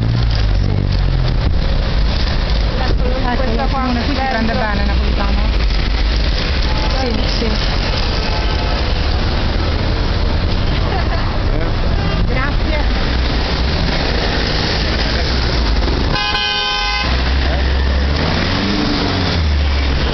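Car engines hum as cars drive slowly past.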